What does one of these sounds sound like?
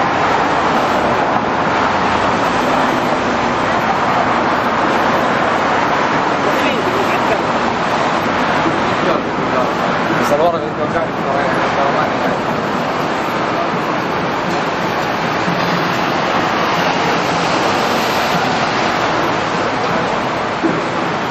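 City traffic rumbles past steadily on a busy street.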